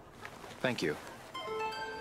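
A young man says a few words calmly.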